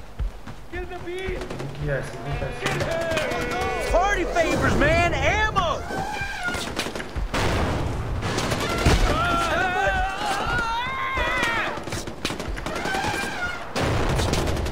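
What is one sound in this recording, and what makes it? An elephant trumpets loudly.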